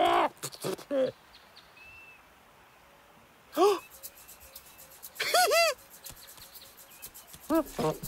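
A cartoon monkey chatters and squeals in short bursts.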